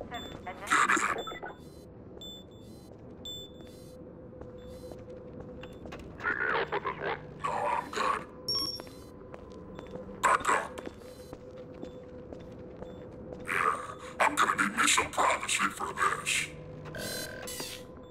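Footsteps echo on a hard floor.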